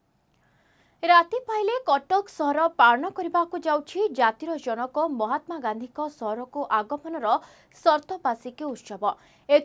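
A young woman reads out the news calmly into a microphone.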